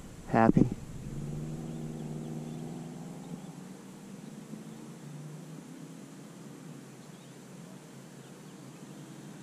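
A small propeller engine drones steadily in the distance.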